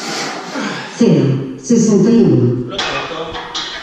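A man grunts loudly with effort.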